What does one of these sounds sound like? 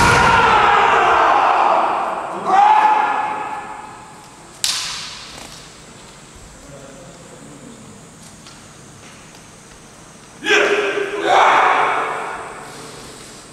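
Fighters shout loudly in an echoing hall.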